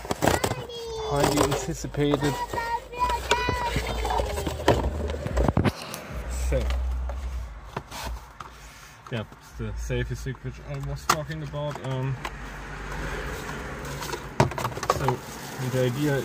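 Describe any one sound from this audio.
Cardboard rustles and tears as a box is opened.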